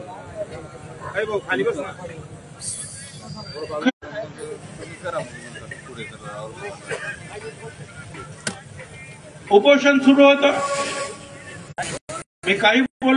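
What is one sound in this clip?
An elderly man speaks forcefully into a microphone over a loudspeaker.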